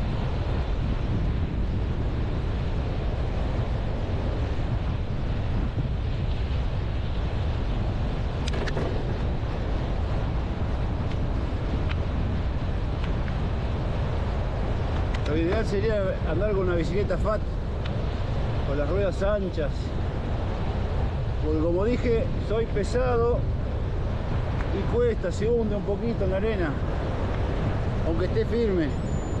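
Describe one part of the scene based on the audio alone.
Waves break and wash gently onto the shore.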